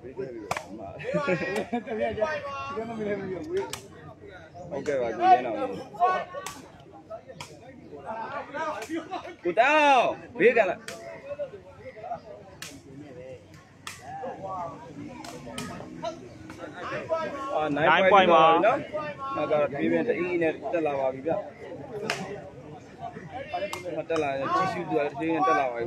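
A crowd of people chatter and shout outdoors.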